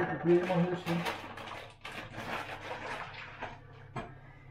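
A paper bag rustles nearby.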